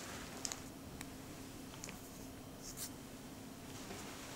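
A plastic wrapper crinkles as a package is set down.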